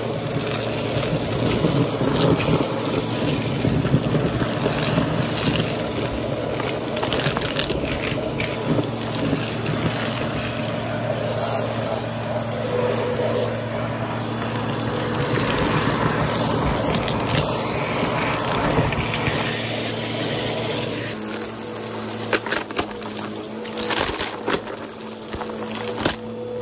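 Small bits of debris rattle and clatter up a vacuum hose.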